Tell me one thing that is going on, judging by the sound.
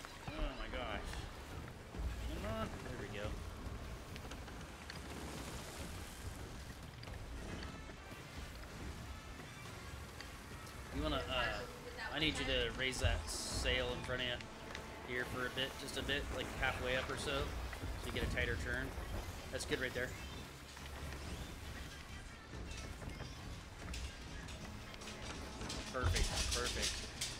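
Ocean waves surge and splash against a wooden ship.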